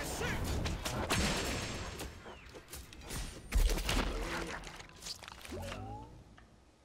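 Blasts and impacts crash in quick bursts.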